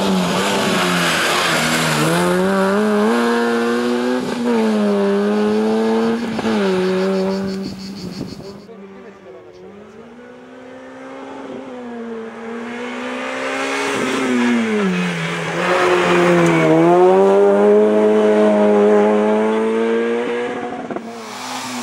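A rally car engine revs hard and roars, rising and dropping in pitch with each gear change.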